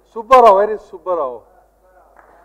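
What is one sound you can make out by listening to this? A man speaks through a microphone with animation.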